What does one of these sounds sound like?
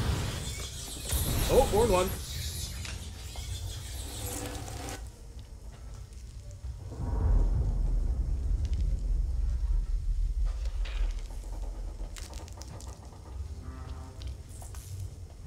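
A flamethrower roars and hisses in bursts.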